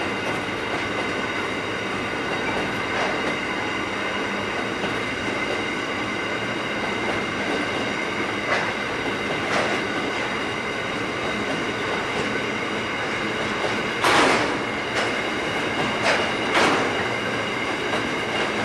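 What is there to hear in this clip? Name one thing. Coal wagons rumble and clatter over a bridge.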